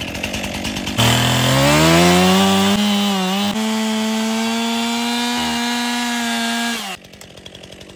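A gas chainsaw revs as it cuts through a palm trunk.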